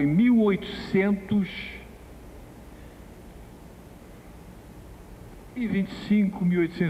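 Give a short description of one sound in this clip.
An older man speaks calmly through a microphone, pausing between phrases.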